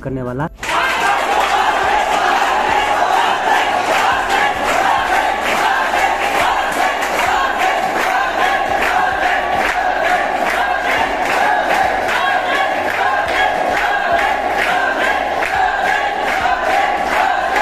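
A crowd of young men cheers and shouts loudly.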